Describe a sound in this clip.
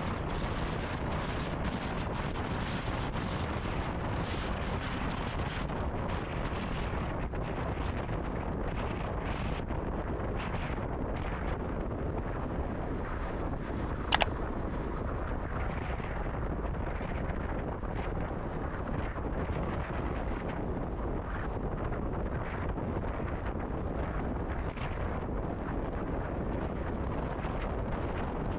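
A car engine hums steadily as tyres roll over the road.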